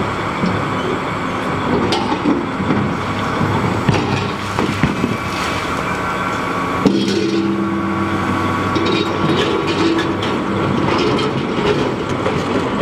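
A heavy excavator's diesel engine rumbles and whines steadily.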